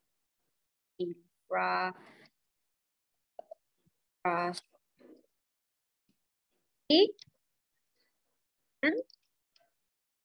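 A young girl speaks slowly in short phrases through a computer microphone.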